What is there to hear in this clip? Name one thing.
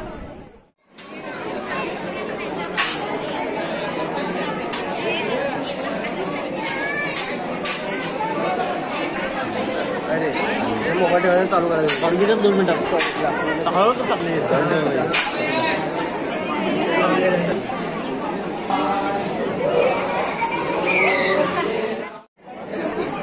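A crowd of men and women murmurs and chatters nearby.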